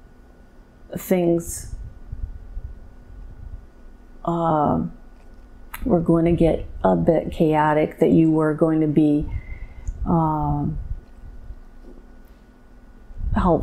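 A woman speaks softly and slowly, close to a microphone.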